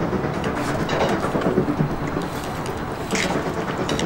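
Small balls splash and rattle in water beside a boat.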